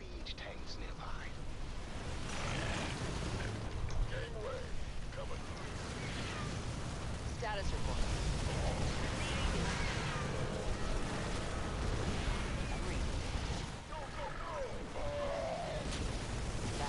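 Explosions boom with a deep rumble.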